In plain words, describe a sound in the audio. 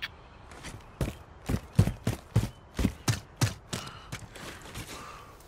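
Quick footsteps run over dirt and rocks.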